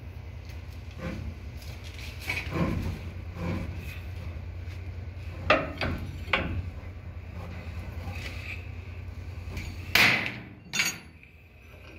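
A metal wrench clanks against a steel coupling.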